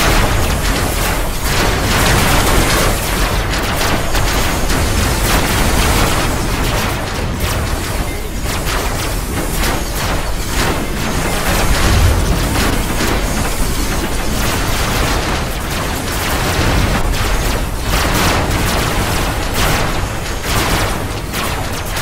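A heavy engine rumbles low and steadily.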